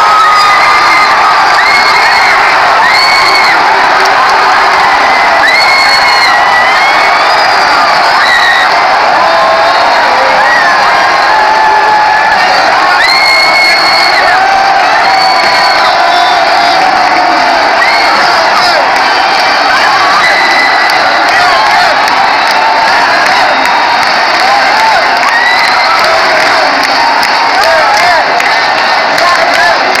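A huge stadium crowd roars and chants without a break.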